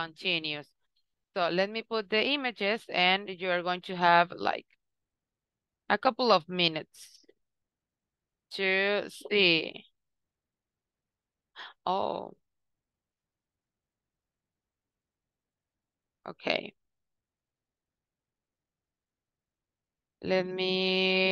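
A young woman speaks calmly over an online call, in short bursts with pauses.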